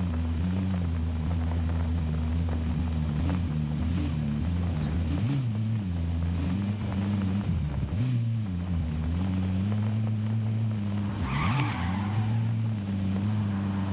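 A vehicle engine drones steadily, rising and falling in pitch as it drives.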